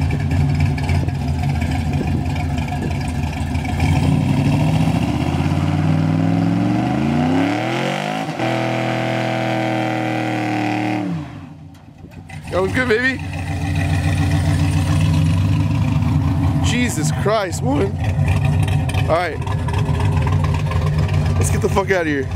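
A truck engine rumbles and revs hard.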